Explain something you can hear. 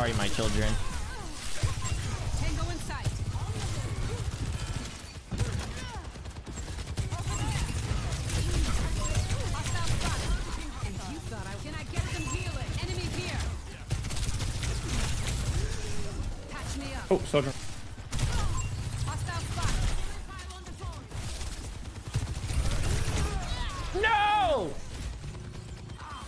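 Guns fire rapidly in a game.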